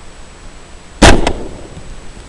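A rifle fires a single loud shot close by.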